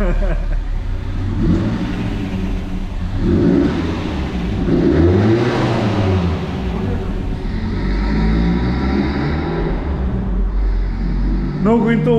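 A car engine revs loudly, echoing in a large enclosed space.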